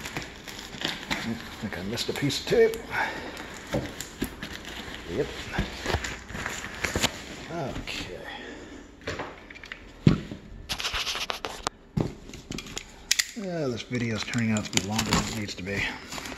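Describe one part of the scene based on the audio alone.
A cardboard box scrapes and rustles as it is handled and tipped over.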